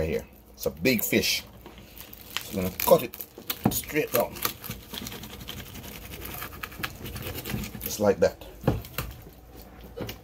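A knife crunches through crispy fried fish.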